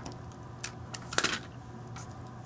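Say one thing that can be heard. A paper punch clicks.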